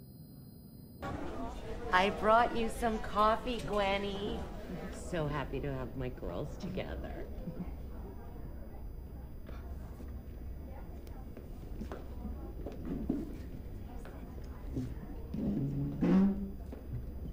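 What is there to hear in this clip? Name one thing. A small band plays guitars and keyboard.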